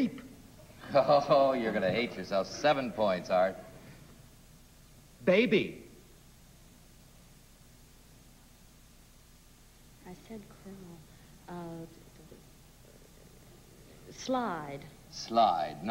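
A middle-aged man speaks into a microphone with animation.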